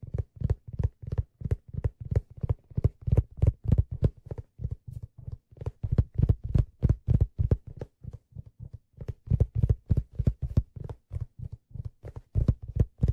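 A man plays a drum with quick, deep beats close by.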